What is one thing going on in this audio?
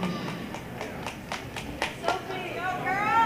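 Dancers' feet stomp and clap on a wooden floor.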